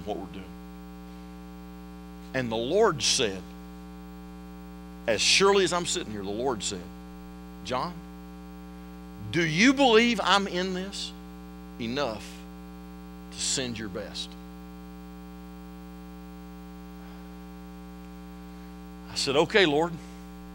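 A middle-aged man speaks through a microphone with pauses, in a large echoing hall.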